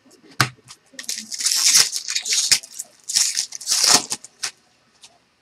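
A foil wrapper crinkles and tears.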